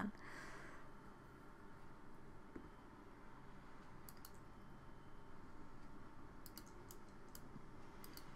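Water sprays steadily from a shower.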